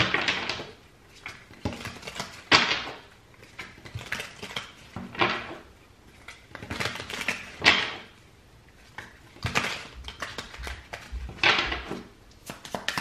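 Playing cards are shuffled and riffled by hand in short bursts.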